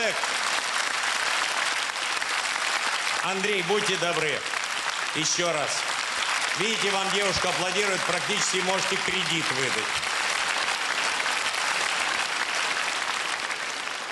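A large audience laughs loudly.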